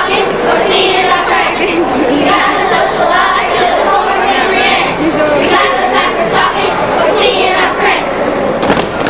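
Children sing a song together in a large echoing hall.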